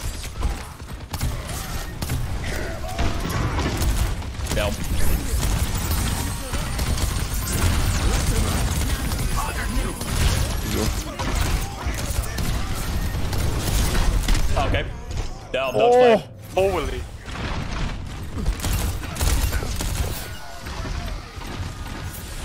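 Rapid gunfire and blasts ring out in a game.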